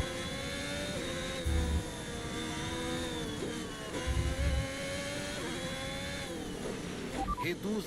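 A racing car engine drones steadily, its pitch dipping and rising slightly.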